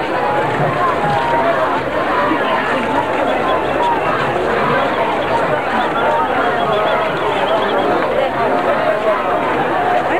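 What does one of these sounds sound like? A large crowd of men and women chatters loudly close by.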